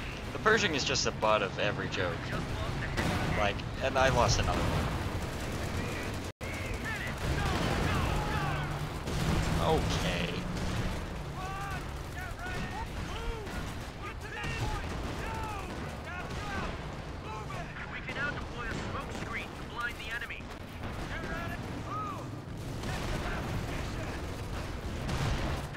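Explosions boom and rumble one after another.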